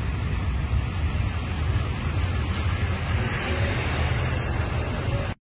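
Wind blows hard and rumbles outdoors.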